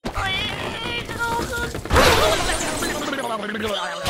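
A cartoon bird squawks as it is launched.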